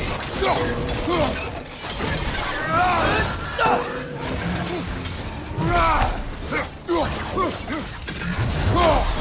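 Blades whoosh through the air in fast swings.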